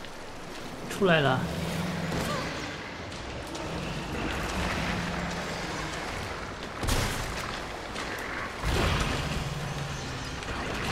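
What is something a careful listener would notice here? A monster lets out a deep, gurgling roar.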